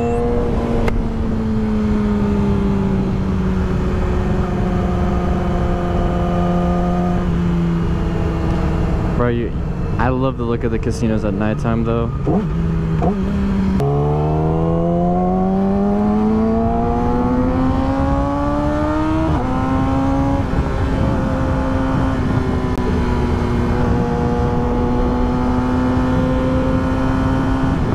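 A motorcycle engine drones at speed, its pitch falling and rising as it shifts gears.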